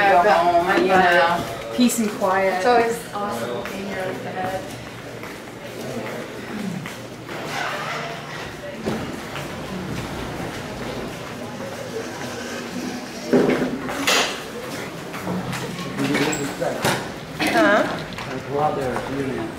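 Wheelchair wheels roll over a tiled floor.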